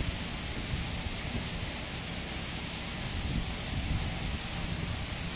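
Wheat grain trickles from a trailer's tailgate into a man's hand.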